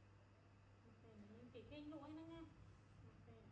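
A woman hums softly and close by.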